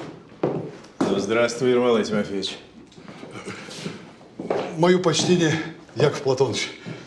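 An elderly man with a deep voice speaks a greeting.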